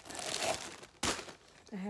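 A glass jar knocks lightly.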